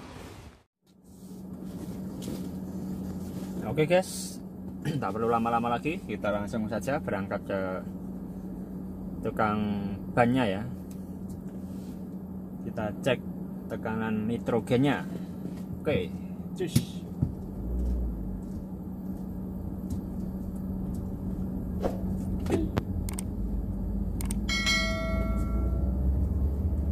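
A car engine idles with a steady low hum, heard from inside the car.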